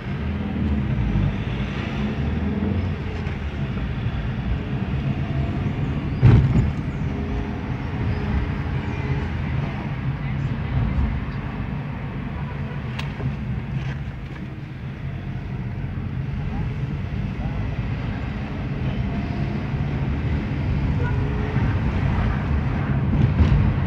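A car engine hums steadily from inside the car as it drives along.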